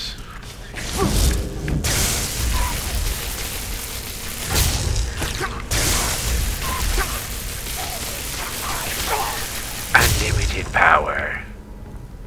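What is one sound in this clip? Electric magic crackles and buzzes loudly.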